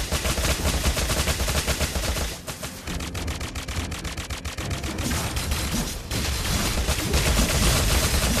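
Game spell effects and hits crackle and boom rapidly.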